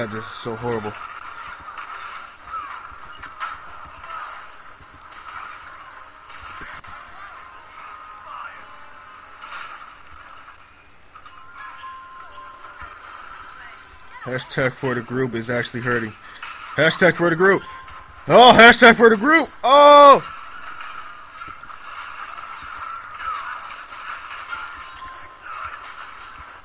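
Game combat effects clash and crackle in a busy fight.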